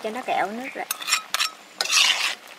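A metal lid clanks against a wok.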